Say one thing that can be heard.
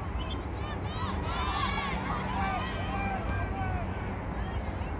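Young women shout and call out to each other across an open outdoor field.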